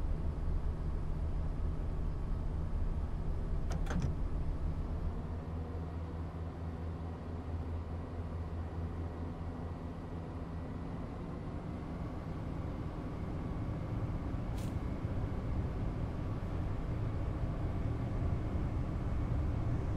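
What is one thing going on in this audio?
A train engine hums and rumbles steadily while moving along the track.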